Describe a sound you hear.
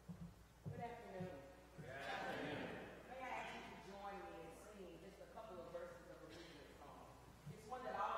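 An older woman speaks calmly and with feeling.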